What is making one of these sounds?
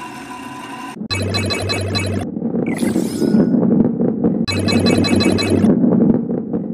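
Coins chime as a ball collects them.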